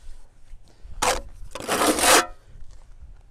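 A trowel scrapes wet mortar against a block wall.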